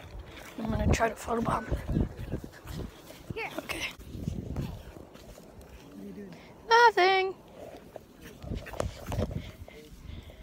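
A young boy talks with animation close to the microphone.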